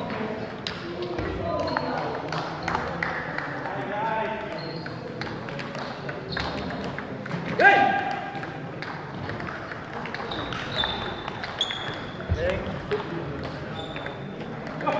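The space sounds like a large echoing hall.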